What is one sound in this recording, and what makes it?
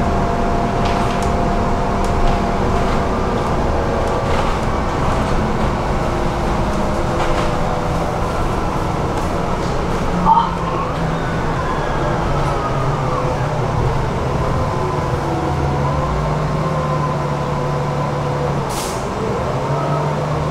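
A tram hums and rumbles steadily along its rails, heard from inside.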